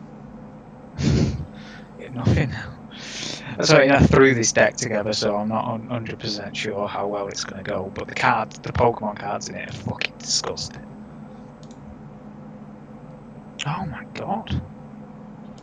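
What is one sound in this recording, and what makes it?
A young man talks casually into a microphone, close by.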